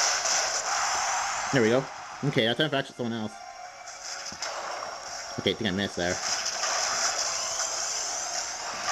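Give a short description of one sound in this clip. Electronic game sound effects and music play through a small, tinny speaker.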